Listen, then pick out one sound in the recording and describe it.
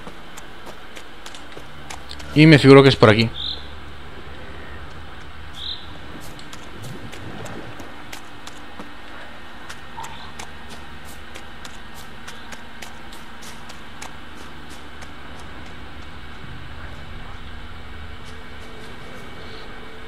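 Footsteps rustle quickly over leaves and forest ground.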